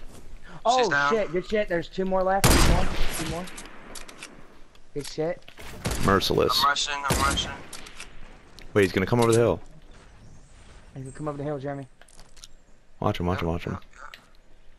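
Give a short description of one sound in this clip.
A sniper rifle fires a single shot.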